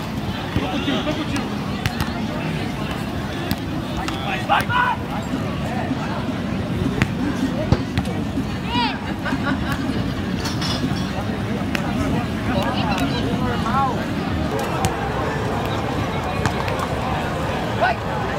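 Men call out to each other during play.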